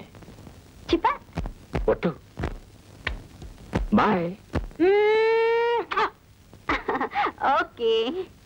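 A young woman talks into a telephone with animation, her voice rising into long drawn-out cries.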